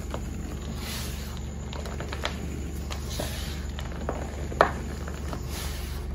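Hands press and scrunch into soft, crumbly powder with a dry, crackling rustle.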